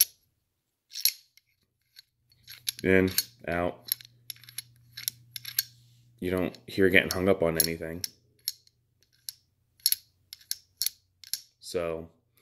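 Small metal parts click.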